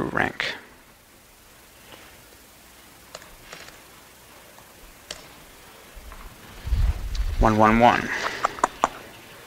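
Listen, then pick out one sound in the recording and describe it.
A man speaks into a microphone, his voice echoing.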